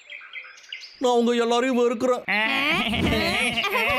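A cartoon man speaks in a strained, animated voice.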